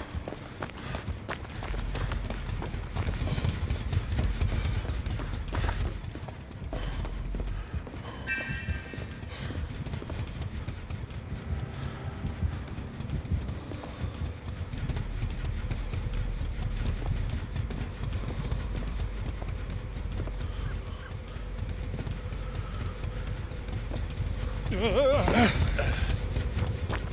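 Footsteps thud on grass and wooden boards.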